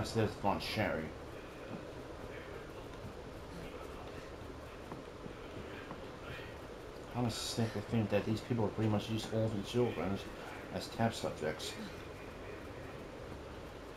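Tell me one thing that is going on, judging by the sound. Footsteps walk across a wooden floor.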